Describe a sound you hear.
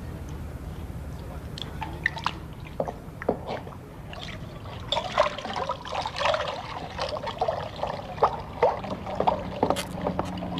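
A dog laps water noisily.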